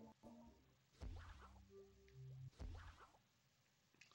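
Short menu chimes sound as options are selected.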